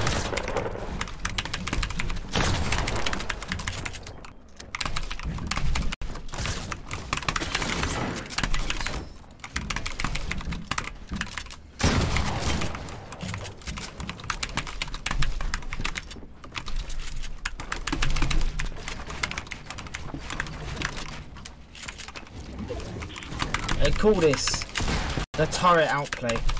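Game gunshots and building clicks crackle rapidly.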